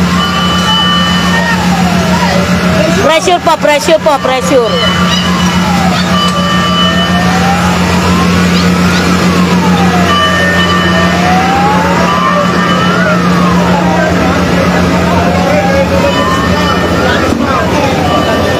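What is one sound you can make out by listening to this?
A large truck's engine idles with a steady low rumble.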